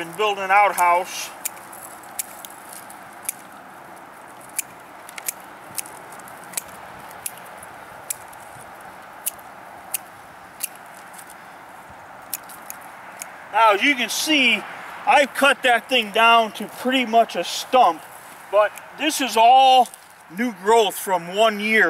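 An older man talks calmly outdoors, close by.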